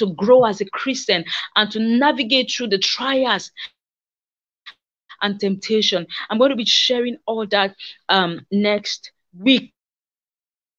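A woman speaks with passion through an online call microphone.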